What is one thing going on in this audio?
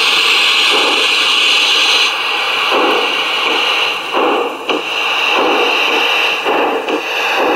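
Steam hisses sharply from a small locomotive.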